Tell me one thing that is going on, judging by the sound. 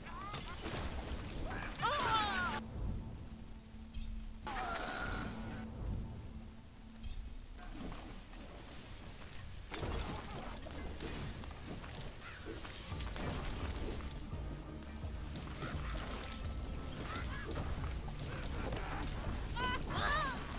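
Lightning bolts crack sharply.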